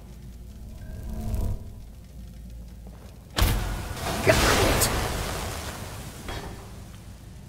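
A magic spell bursts out with a loud roaring whoosh and fades away.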